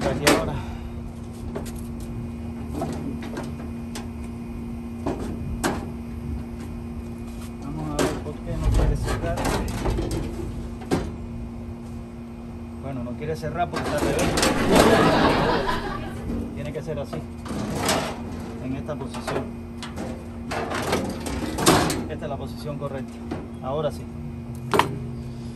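Metal panels clatter and knock as they are handled.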